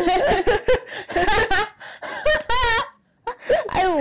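Two young women laugh loudly.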